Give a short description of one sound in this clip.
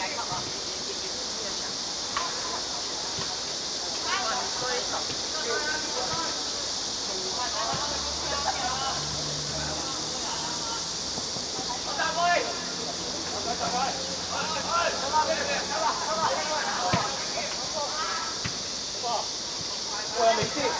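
Young boys shout and call out to each other across an open pitch.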